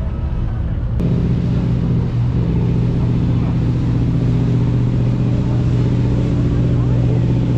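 A boat engine hums steadily across the water.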